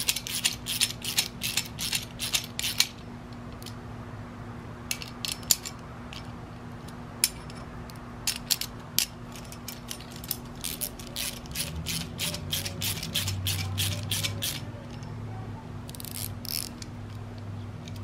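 A ratchet wrench clicks rapidly as a bolt is tightened.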